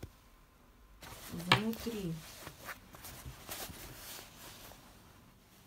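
Fabric rustles and crinkles as clothes are handled close by.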